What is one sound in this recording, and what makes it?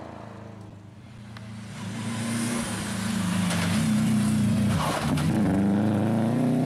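A rally car engine roars loudly as it approaches and speeds past.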